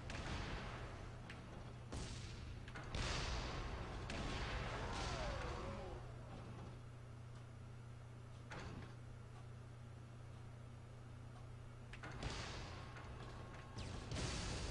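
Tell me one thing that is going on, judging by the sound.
A heavy cannon fires in short roaring bursts.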